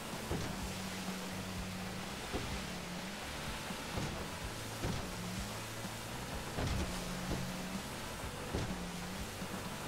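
A motorboat engine drones steadily at speed.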